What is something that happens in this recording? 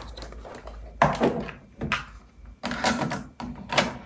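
A cassette deck's tape door clicks open and shut.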